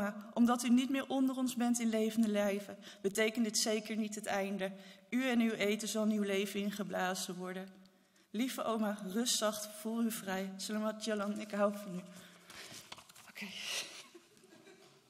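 A woman sings into a microphone in a large echoing hall.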